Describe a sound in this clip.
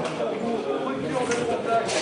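A man speaks into a radio handset.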